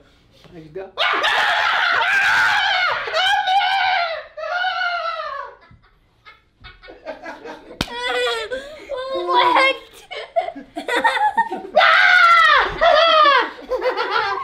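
A young man shouts and shrieks playfully.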